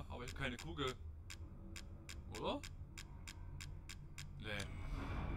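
Short menu clicks tick in a quick series.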